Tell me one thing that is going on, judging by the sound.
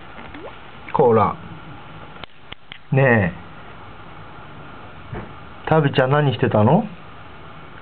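A cat meows close by, a few times.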